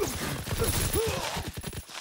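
Gunfire rattles in a quick burst.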